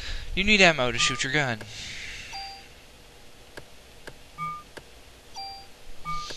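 Short electronic menu beeps sound now and then.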